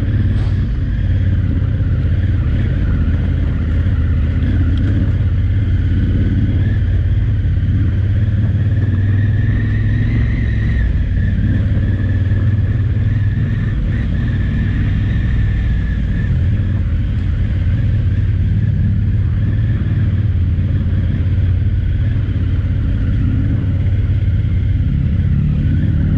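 Tyres crunch and rattle over loose gravel.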